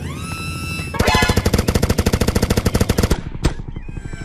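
A minigun fires in a rapid, rattling burst.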